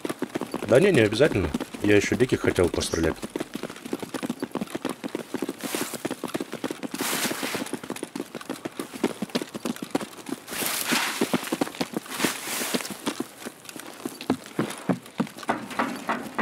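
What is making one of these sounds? Footsteps crunch steadily over gravel and grass.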